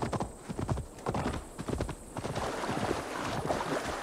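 A horse splashes through shallow water.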